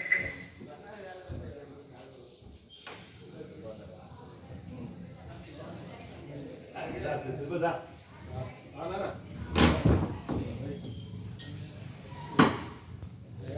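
A metal lock clanks against a wooden door.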